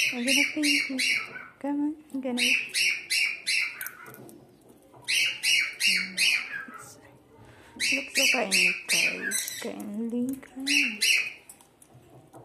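A parrot gives quick bursts of sharp, rhythmic squawks close by.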